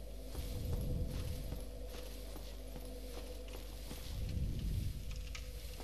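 Footsteps clank in metal armour.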